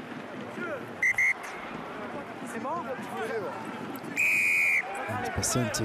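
A referee blows a whistle in short, sharp blasts.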